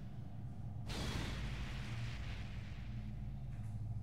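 A deep whoosh bursts and fades away.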